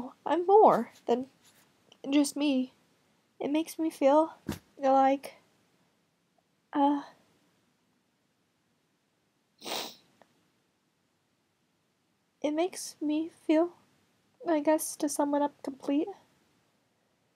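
A young woman talks casually and close to the microphone, with pauses.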